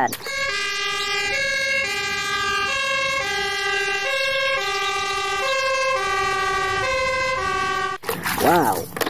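A fire engine siren wails in a steady two-tone pattern.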